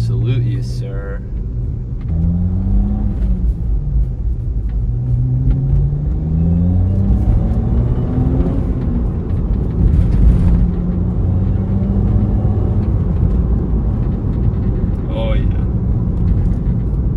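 A car engine hums and revs up and down through the gears.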